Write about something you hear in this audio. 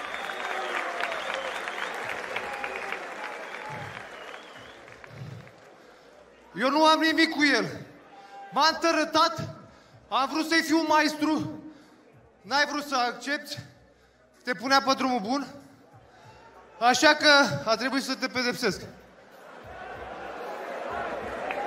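A crowd murmurs and cheers in the background.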